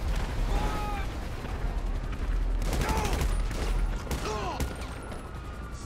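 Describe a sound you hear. Rapid gunfire bursts out close by.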